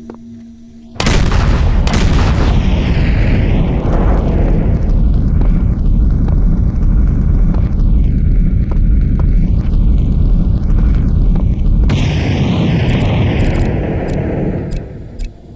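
A huge burst of flame roars loudly.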